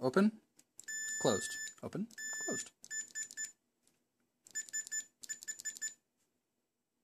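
An electronic tester beeps in short bursts.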